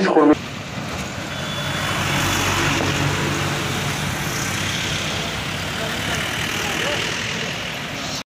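Heavy vehicles rumble past on a road.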